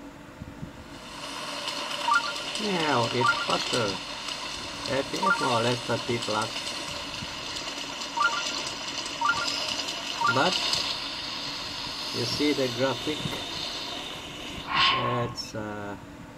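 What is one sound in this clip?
Video game sound effects and music play from a small speaker.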